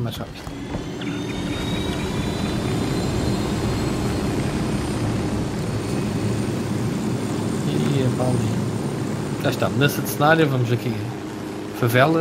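A helicopter's rotor drones steadily.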